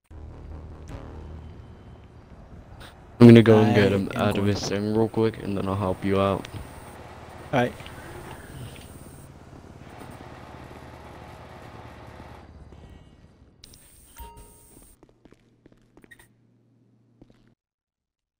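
Footsteps tap on hard pavement.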